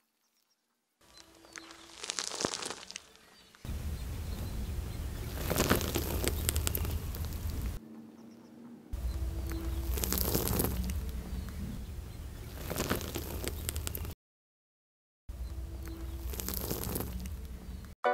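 A car tyre rolls over an ear of corn, crushing and crackling it.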